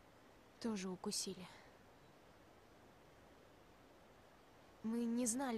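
A teenage girl speaks.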